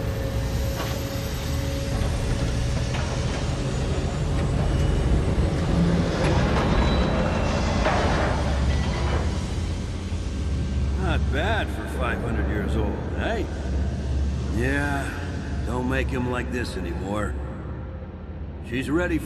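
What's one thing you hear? A heavy machine rumbles deeply.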